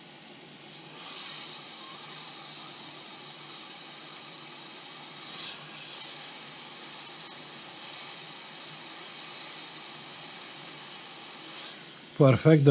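A hot air tool blows with a steady hiss.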